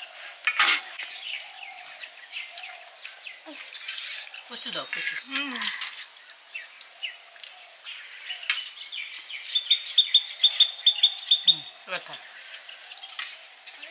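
Hands squish and mix food on metal plates.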